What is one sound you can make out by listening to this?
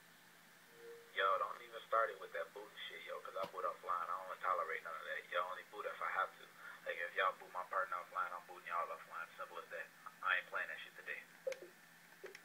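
A recorded voice message plays through a small phone speaker.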